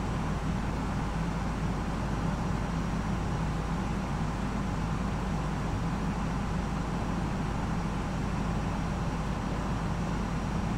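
Jet engines drone steadily with a low rumble.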